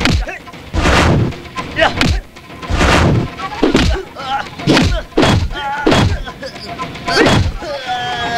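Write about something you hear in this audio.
Punches and blows land with loud, sharp thumps.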